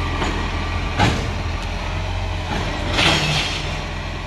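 A garbage truck's lifting arm clanks as it empties a bin.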